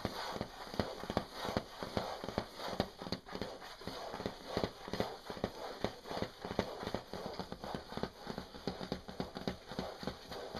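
Fingers tap and scratch rapidly on a thin plastic surface close by.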